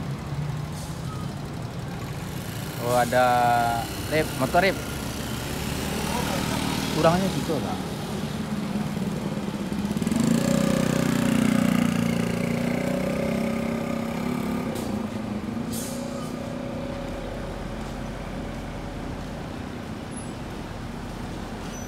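A large bus engine idles with a low rumble.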